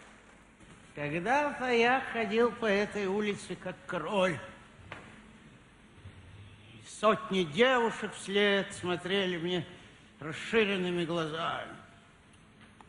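A middle-aged man speaks with animation through a microphone on stage.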